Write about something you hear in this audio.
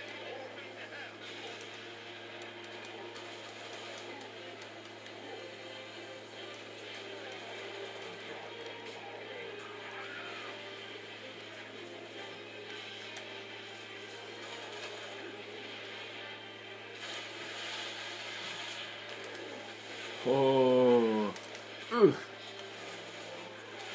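Video game sounds play faintly through a speaker.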